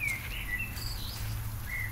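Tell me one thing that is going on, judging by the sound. Footsteps swish softly on grass.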